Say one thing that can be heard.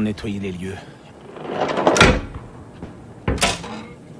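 A metal hatch wheel turns with a clank.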